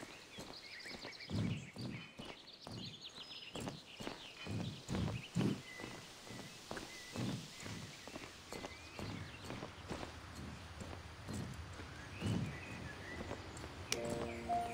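A horse's hooves clop steadily on stone.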